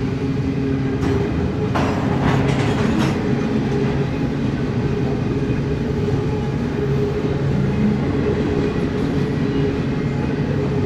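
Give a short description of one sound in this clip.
A long freight train rumbles steadily past outdoors.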